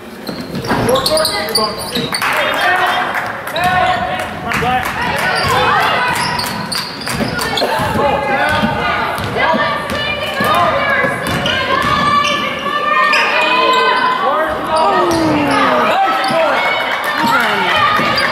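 Spectators talk and call out nearby in a large echoing gym.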